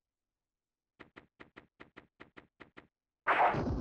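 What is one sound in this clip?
Footsteps tap quickly on a wooden floor.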